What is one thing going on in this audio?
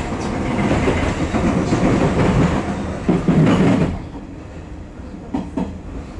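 A train rumbles and rattles along the tracks, then quietens.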